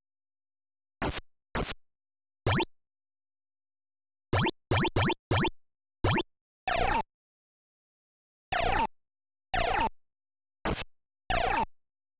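Short electronic bleeps sound one after another.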